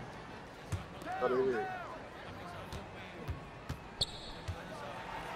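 A basketball bounces on a hard court in steady dribbles.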